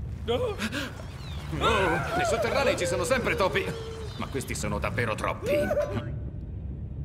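A young man speaks tensely.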